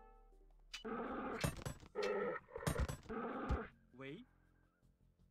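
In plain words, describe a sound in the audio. Short bursts of game sound effects play in quick succession.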